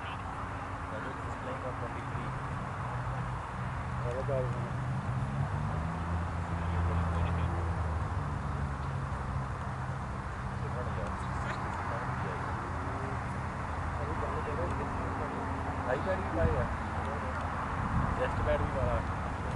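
Men talk and call out faintly across an open field.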